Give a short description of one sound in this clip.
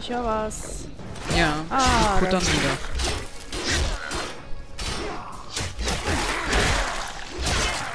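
Weapons clash and thud in a close fight.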